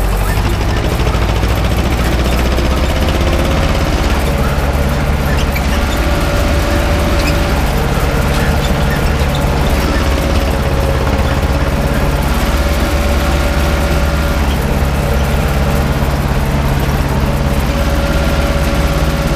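A cultivator scrapes and rattles through dry soil.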